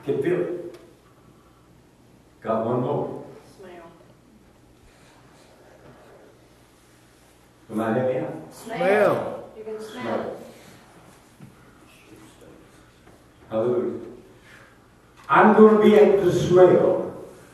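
An elderly man speaks through a microphone and a loudspeaker in bursts, with pauses, in an echoing room.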